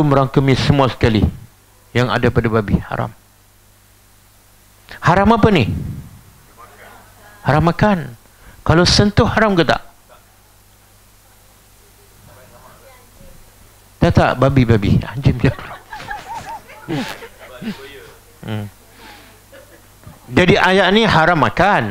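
A middle-aged man lectures in bursts with pauses, heard through a clip-on microphone.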